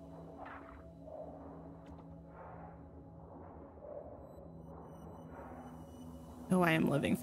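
Water swishes softly as a swimmer glides along underwater.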